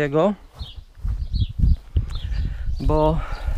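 Footsteps thud on grass and dry ground.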